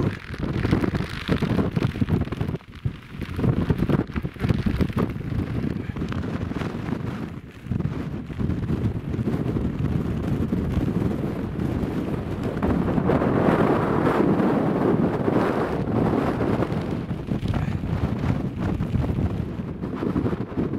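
Strong wind buffets and roars outdoors.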